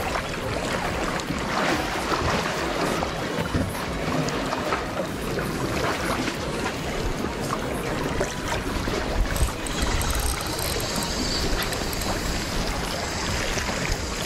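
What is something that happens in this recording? Wind blows over the water outdoors.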